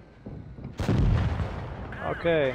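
A tank cannon fires with a loud boom.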